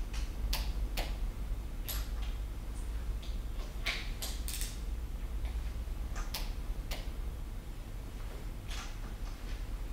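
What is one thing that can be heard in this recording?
A ratchet wrench clicks as it tightens a bolt.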